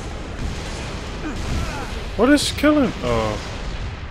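Gunshots crack nearby.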